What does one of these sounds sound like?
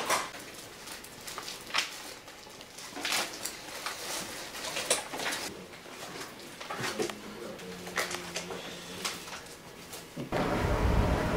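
Paper pages rustle as a man leafs through a folder.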